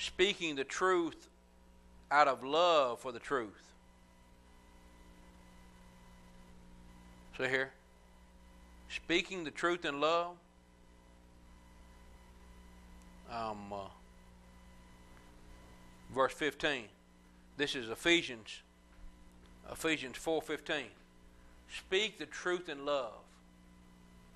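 A middle-aged man speaks calmly and deliberately into a microphone, with pauses between phrases.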